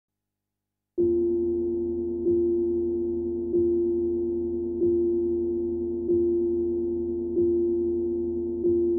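A mallet strikes a tuned wooden bar at an even, slow pace, each note ringing on.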